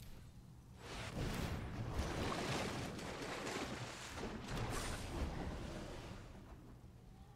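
A magical whooshing and swirling effect plays loudly.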